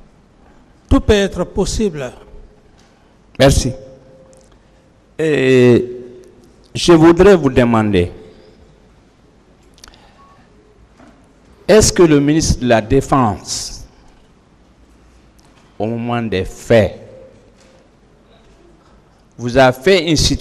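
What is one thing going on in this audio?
A middle-aged man speaks calmly into a microphone, answering.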